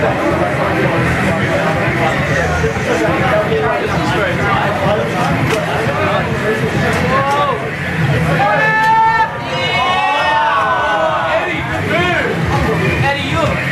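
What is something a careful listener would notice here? A racing car engine roars through arcade loudspeakers, rising and falling in pitch.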